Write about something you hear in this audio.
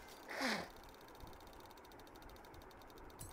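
A prize reel ticks rapidly as it spins.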